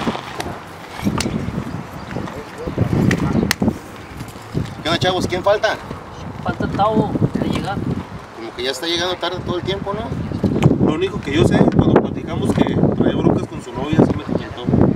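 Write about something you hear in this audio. Several adult men talk casually with one another, close by.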